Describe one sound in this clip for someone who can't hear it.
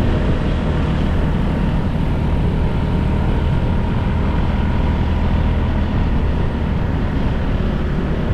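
Wind rushes steadily past the rider.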